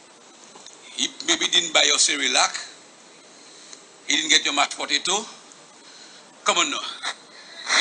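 A man talks playfully to a baby up close.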